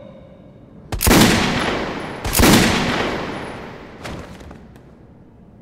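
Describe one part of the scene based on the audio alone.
Two loud pistol shots ring out with echo.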